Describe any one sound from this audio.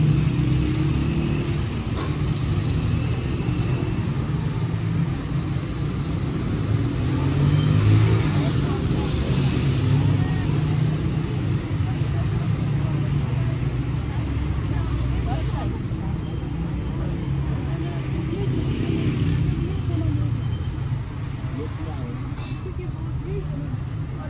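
Footsteps of people walking on pavement shuffle steadily.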